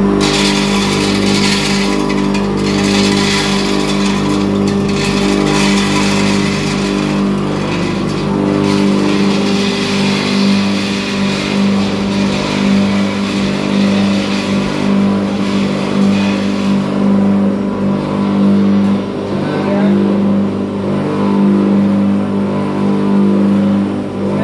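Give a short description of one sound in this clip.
A grinding machine's motor hums steadily.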